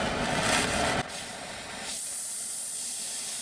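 A gas torch hisses softly with a small flame.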